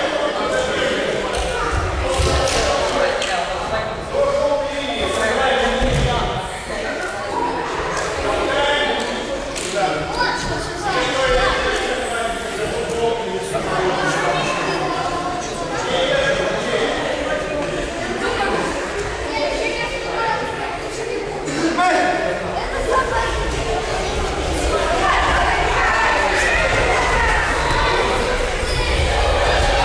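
A crowd of children and young people chatters in a large echoing hall.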